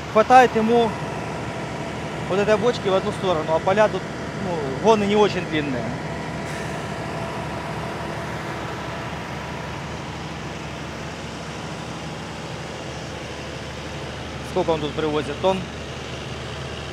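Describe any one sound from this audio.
A tractor engine hums steadily nearby.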